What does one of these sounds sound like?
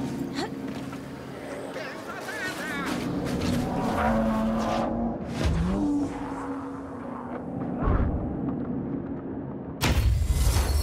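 Heavy blows land with thuds and crashes in a fierce fight.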